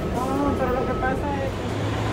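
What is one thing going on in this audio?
A bus rumbles along a city street.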